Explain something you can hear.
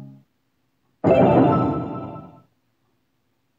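A bright magical chime shimmers.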